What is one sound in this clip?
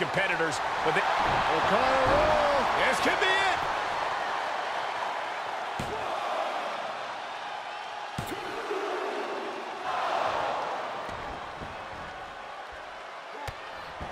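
Bodies thud heavily onto a ring mat.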